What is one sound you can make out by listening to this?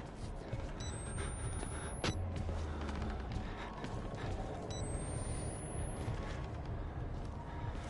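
Footsteps creak on a wooden floor.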